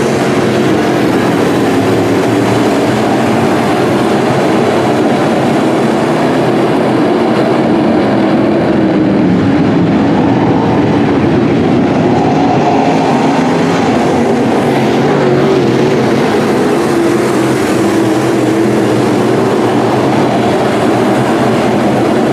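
Engines rev up and down as cars pass close by.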